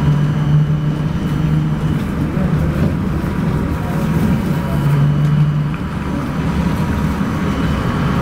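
A vehicle's engine hums steadily from inside while driving along a road.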